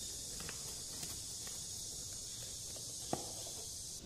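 A spoon scrapes powder from a tin.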